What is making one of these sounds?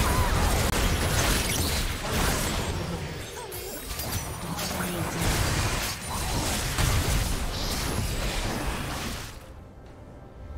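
Spell blasts and clashing combat effects ring out in a game battle.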